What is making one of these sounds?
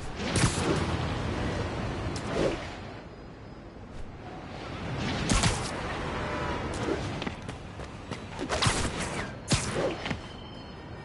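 Sharp whooshing snaps sound every few seconds.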